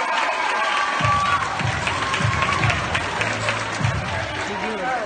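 A crowd claps and applauds.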